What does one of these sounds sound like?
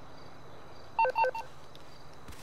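A short electronic chime sounds.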